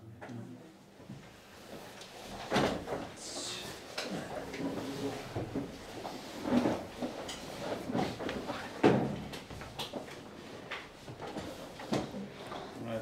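A man handles objects on a table with knocks and rustles.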